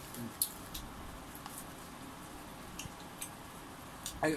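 A young woman chews crunchy food with smacking sounds.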